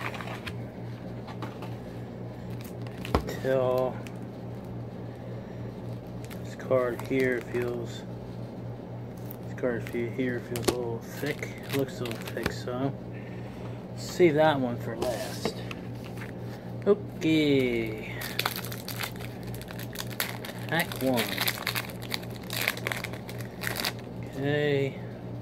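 Cards and plastic wrappers rustle and crinkle in hands.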